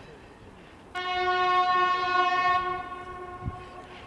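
A train horn blares in the distance.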